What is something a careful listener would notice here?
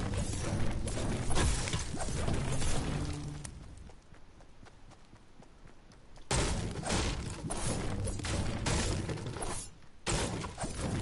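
A pickaxe chops repeatedly into wooden planks.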